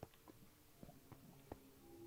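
Lava bubbles and pops softly.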